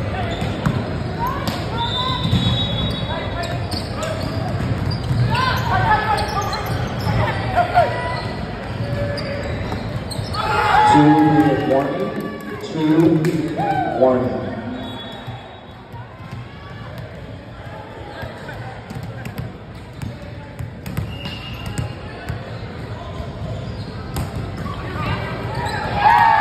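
Players shout and call out to each other in a large echoing gym.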